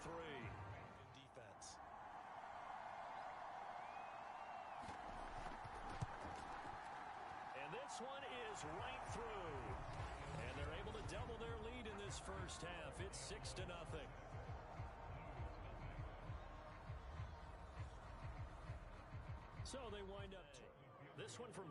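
A large stadium crowd roars and cheers.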